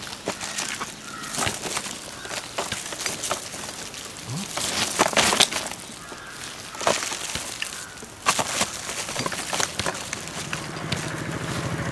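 Dry rubbish rustles and crackles as someone rummages through a bin.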